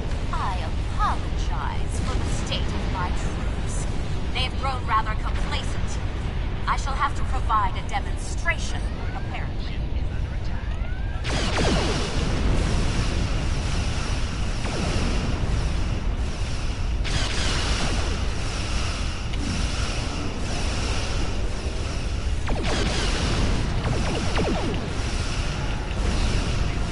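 A deep engine rumble drones steadily.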